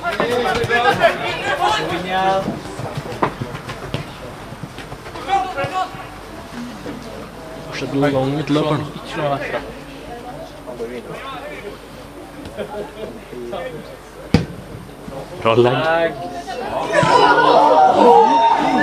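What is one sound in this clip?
Young men shout to one another across an open outdoor field.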